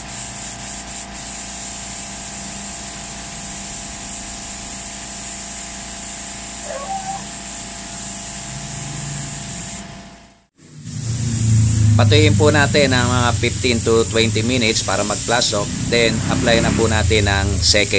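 A compressed-air spray gun hisses as it sprays paint.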